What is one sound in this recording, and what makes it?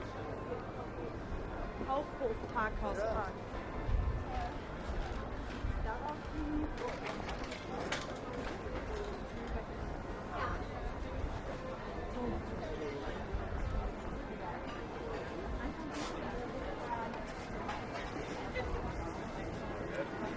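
Footsteps scuff on cobblestones.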